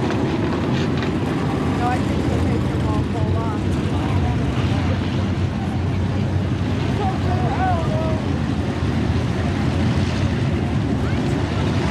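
Race car engines roar loudly around a dirt track outdoors.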